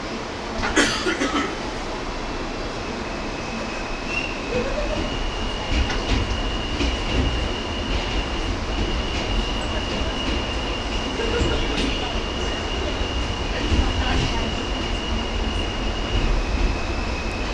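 A subway train pulls out of a station and rumbles through a tunnel.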